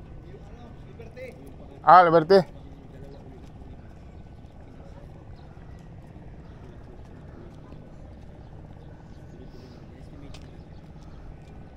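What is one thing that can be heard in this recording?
Footsteps walk on paving stones.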